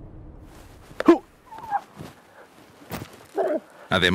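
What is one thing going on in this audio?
A camel groans and grunts nearby.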